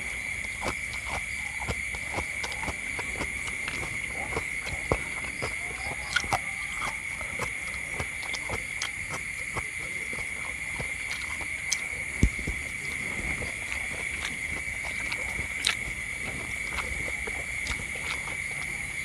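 A man chews food close up with wet smacking of his lips.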